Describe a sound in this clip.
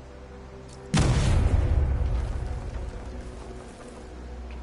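A loud explosion booms and rumbles slowly away.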